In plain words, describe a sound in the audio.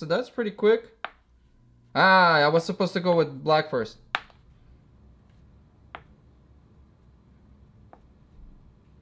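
A wooden chess piece taps down on a board.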